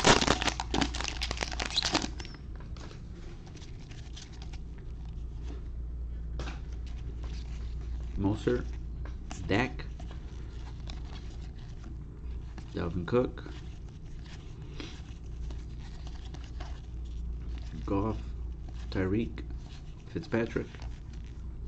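Trading cards rustle and slide against each other as they are shuffled.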